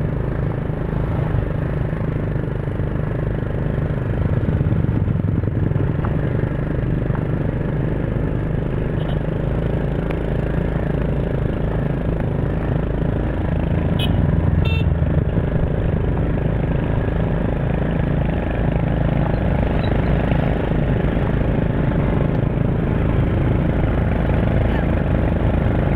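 Motorbike engines hum steadily close by.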